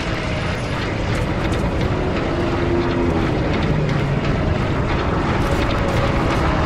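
Footsteps crunch on gravel between rails.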